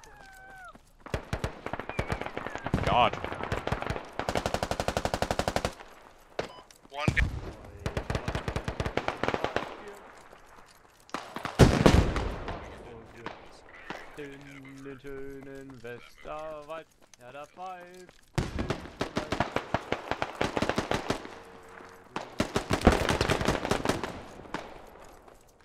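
Quick footsteps crunch on dry dirt and gravel.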